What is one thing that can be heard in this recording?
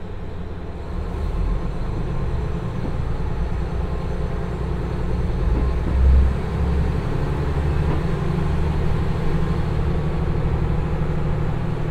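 A train rolls away slowly, its wheels rumbling louder as it gathers speed.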